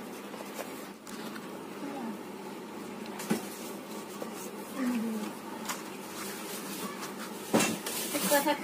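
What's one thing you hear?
Large leaves rustle and crinkle as they are laid down.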